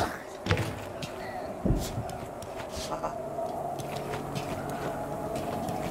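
Footsteps patter on wooden boards.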